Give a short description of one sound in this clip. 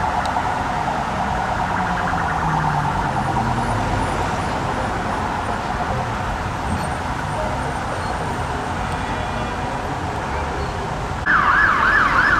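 A police siren wails in the distance.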